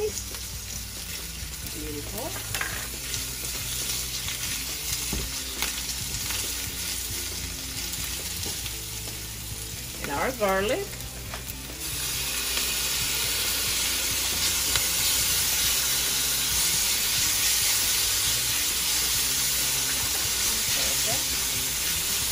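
A utensil scrapes and stirs in a metal pan.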